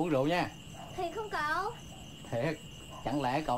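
A young girl asks a question, close by.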